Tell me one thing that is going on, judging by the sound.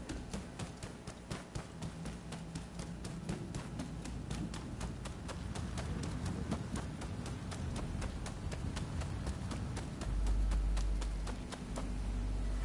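Quick footsteps run steadily across a hard floor and then gravel.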